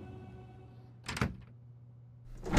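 A heavy door handle clunks.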